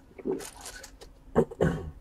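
Card packs rustle and scrape under a hand.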